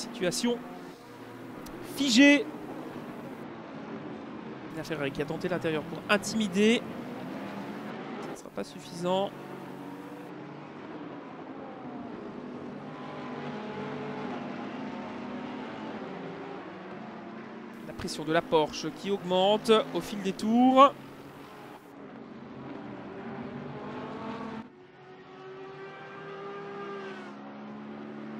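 Racing car engines roar, rising and falling in pitch as the cars accelerate and shift gears.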